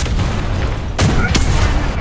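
A tank cannon fires with a sharp boom.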